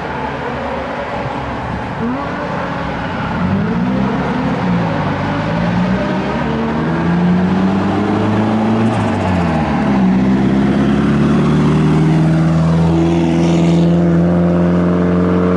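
Tyres screech on tarmac as a car slides.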